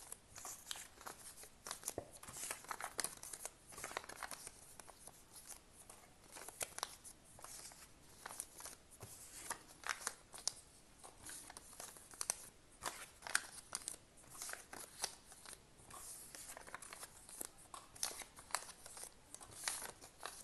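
Paper notes rustle and crinkle close by as they are peeled and handled.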